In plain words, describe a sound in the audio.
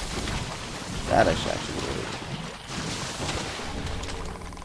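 A burst of magic explodes with a whoosh.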